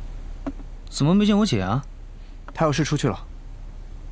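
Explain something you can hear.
A man speaks in a questioning tone up close.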